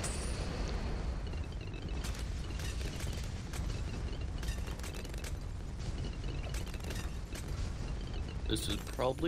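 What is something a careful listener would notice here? Quick electronic pops and zaps crackle.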